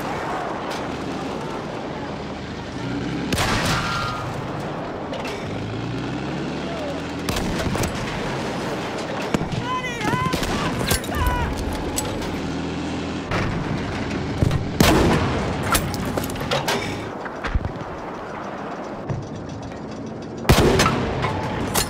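A tank engine rumbles and its tracks clatter over snow.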